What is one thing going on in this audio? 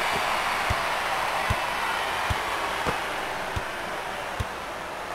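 A basketball bounces on a wooden court with dull thuds.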